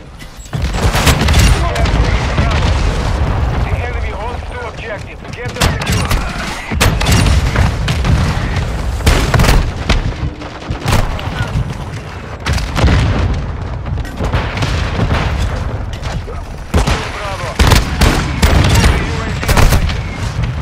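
Shotgun blasts boom one after another, loud and sharp.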